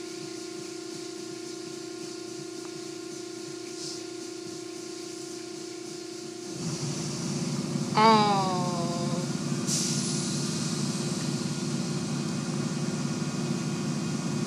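Car wash machinery hums steadily.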